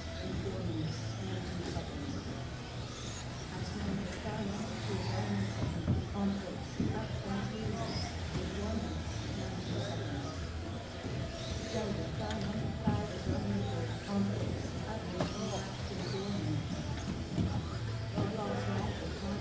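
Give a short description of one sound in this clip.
Small electric racing cars whine as they speed around a track.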